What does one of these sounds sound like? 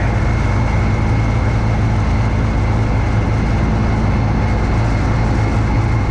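A snow blower roars as it throws snow.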